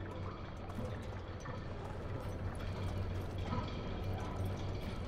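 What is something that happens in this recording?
Water ripples and laps steadily.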